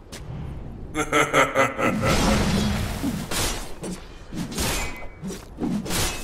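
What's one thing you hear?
Magic spells crackle and burst in a fight.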